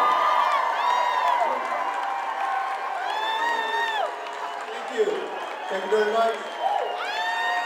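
A live band plays along.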